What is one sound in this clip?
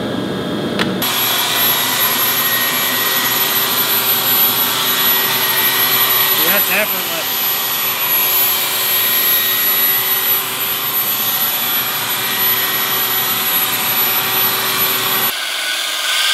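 A belt sander whines steadily as it grinds a metal tube.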